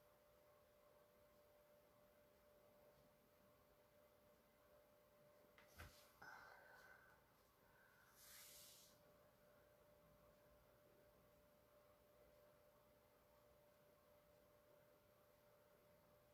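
A paintbrush brushes softly across a canvas.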